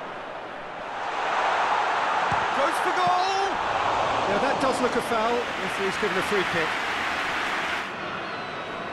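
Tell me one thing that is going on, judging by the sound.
A large stadium crowd roars loudly and then dies down.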